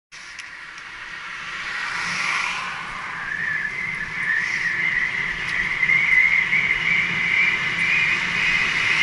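Bicycle tyres whir steadily on the road, rising in pitch as the bike speeds up.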